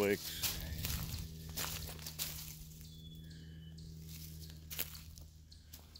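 Footsteps crunch on dry twigs and stones.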